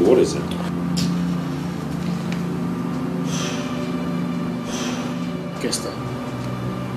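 A man sobs and breathes heavily nearby.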